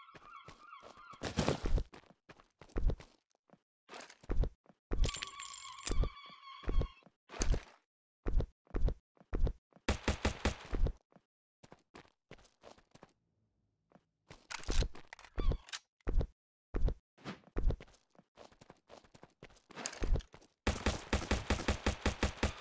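Wooden planks knock into place again and again.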